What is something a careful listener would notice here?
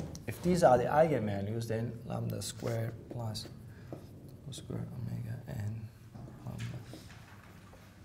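A man speaks calmly in a room with some echo.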